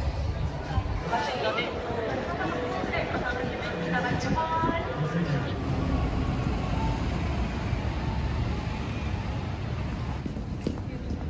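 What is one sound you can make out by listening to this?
Distant voices and street bustle fill a busy outdoor street.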